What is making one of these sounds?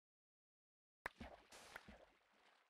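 Water splashes and gurgles.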